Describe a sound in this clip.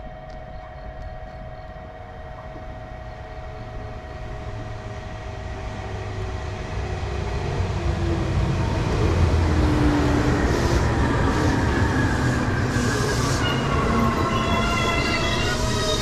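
A train approaches and grows louder, rumbling past close by.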